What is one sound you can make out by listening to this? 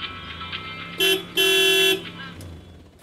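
A small electric motor whirs in short bursts.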